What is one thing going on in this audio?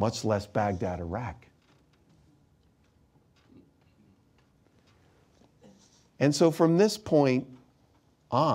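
A middle-aged man speaks calmly into a close microphone, pausing between phrases.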